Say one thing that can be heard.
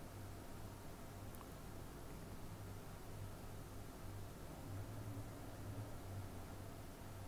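Chicken sizzles and crackles in a hot pan.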